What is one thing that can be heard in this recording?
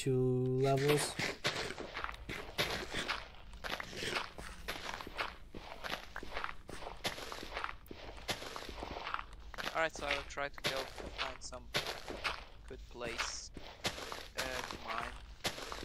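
Game blocks crunch and break repeatedly as they are dug.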